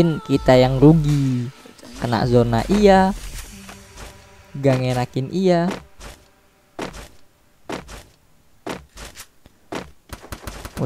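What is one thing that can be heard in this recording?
Footsteps thud over grass at a run.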